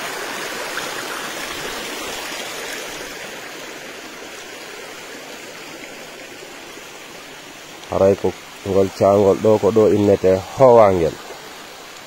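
Water trickles and gurgles over stones in a shallow stream.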